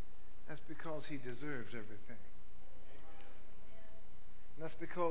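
A man speaks calmly to an audience in a large echoing hall.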